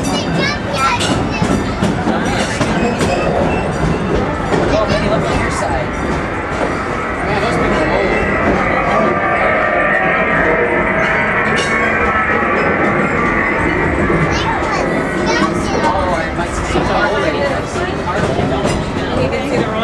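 A small open train rumbles and clatters steadily along its track.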